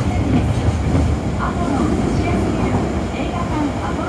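A passing train roars loudly by on the next track.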